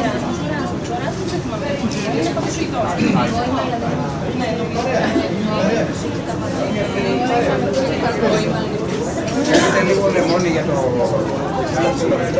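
A crowd of adults chatters close by, with many overlapping voices.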